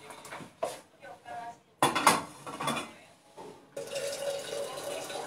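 A television plays in the background.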